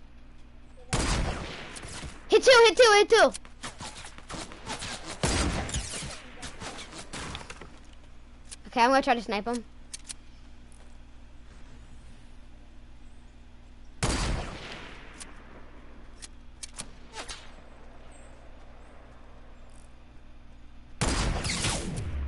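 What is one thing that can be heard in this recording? A sniper rifle fires loud, echoing shots.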